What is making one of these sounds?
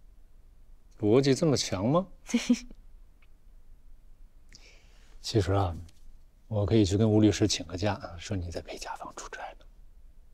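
A man speaks calmly and warmly, close by.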